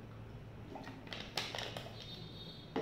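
A plastic bottle cap clicks and rattles as it is closed.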